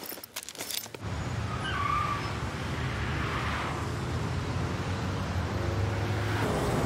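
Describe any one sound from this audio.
Heavy traffic rumbles steadily along a highway.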